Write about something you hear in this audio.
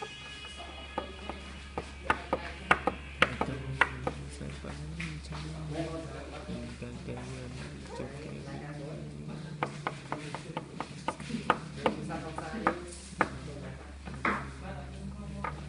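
Small plastic toys tap and click against a hard surface.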